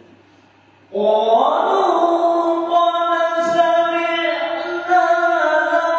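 A man chants a recitation into a microphone, heard through loudspeakers in an echoing hall.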